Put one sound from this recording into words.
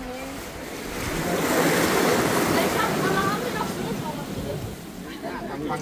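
Waves wash and splash against a boat's hull.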